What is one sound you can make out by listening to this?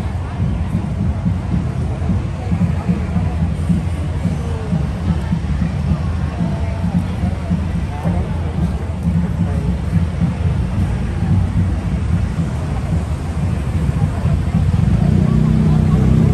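Car engines hum slowly nearby.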